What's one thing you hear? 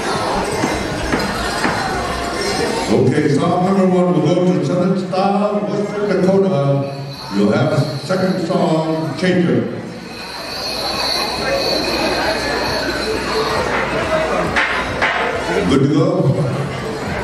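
A crowd of men and women chatters in the distance.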